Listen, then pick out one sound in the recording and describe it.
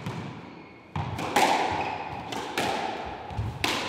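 A squash ball is struck hard and smacks against the walls with echoing bangs.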